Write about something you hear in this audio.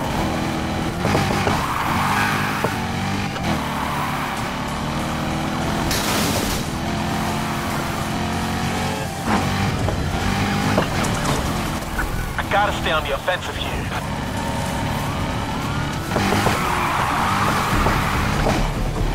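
Tyres screech as a car drifts around bends.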